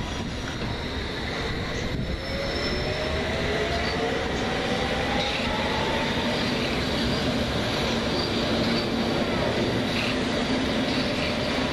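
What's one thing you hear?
A second train pulls in with a rising motor whine and rumbling wheels.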